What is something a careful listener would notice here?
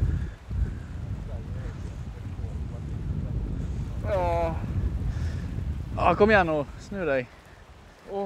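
Wind rumbles across open water.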